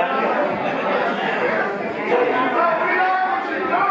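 A man sings into a microphone over the band.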